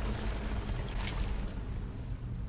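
A game menu opens with a short whoosh.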